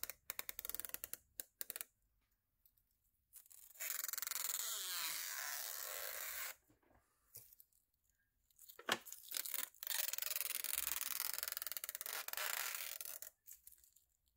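A thin plastic film crinkles and rustles between fingers.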